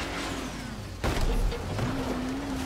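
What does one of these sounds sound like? A buggy crashes with a loud bang.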